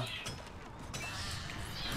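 A pickaxe chips at rock.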